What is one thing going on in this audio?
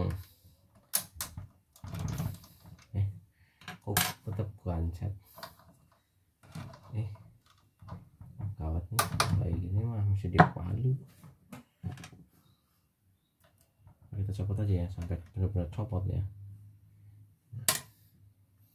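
Small plastic parts click and snap as they are handled.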